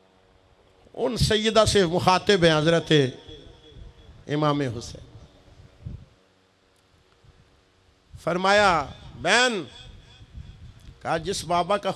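A man preaches with passion into a microphone, his voice carried over loudspeakers with a slight echo.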